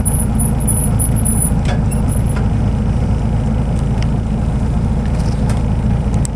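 A car engine hums low and steady from inside the vehicle.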